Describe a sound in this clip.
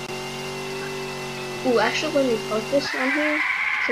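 A car engine hums steadily at high speed, then cuts off.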